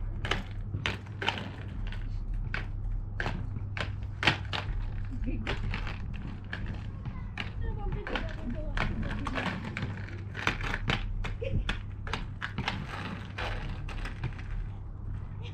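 Inline skate wheels roll and clack on rough pavement close by.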